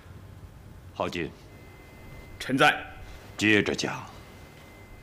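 A man speaks in a low, grave voice, in short bursts with pauses.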